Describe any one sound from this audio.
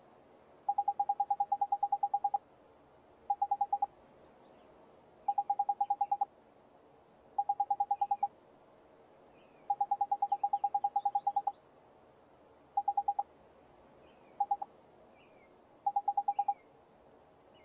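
Rapid electronic blips chatter in short bursts, like text being typed out in a game.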